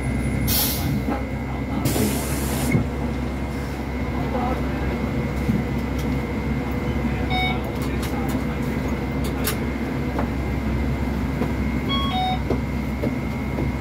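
A bus engine hums steadily as it idles.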